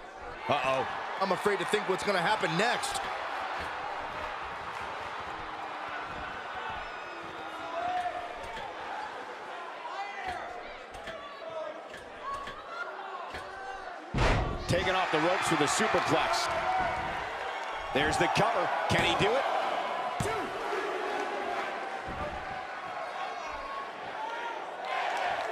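A large crowd cheers and murmurs throughout.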